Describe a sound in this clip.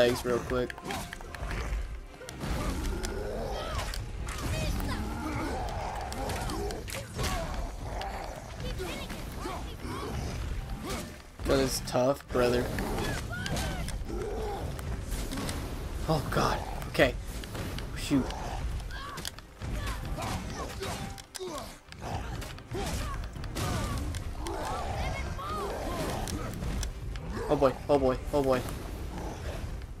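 Heavy blows thud and crash during a fight.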